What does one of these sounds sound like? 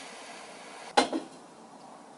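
A glass knocks once against a hard surface.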